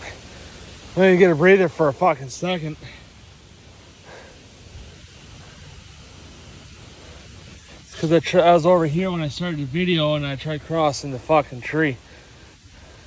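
A young man talks close to a microphone, outdoors.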